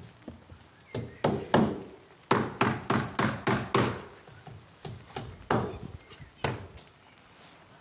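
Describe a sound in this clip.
A hammer knocks on wood in quick, ringing blows.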